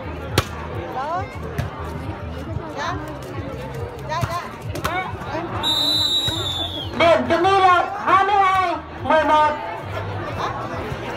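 A crowd of spectators chatters and cheers outdoors.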